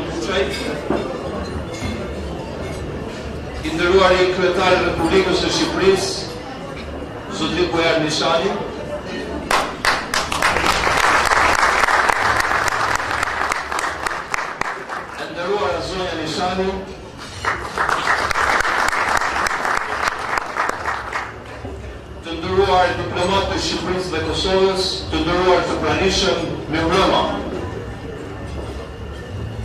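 A man recites in a melodic, chanting voice through a microphone and loudspeaker.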